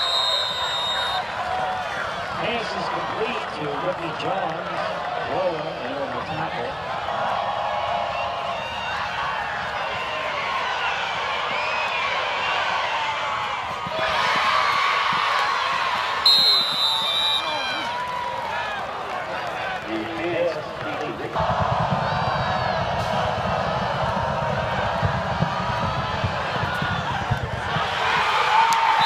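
A large crowd cheers and shouts from stands outdoors.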